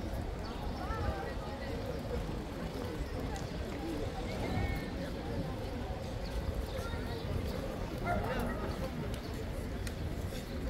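Footsteps of passers-by patter on pavement.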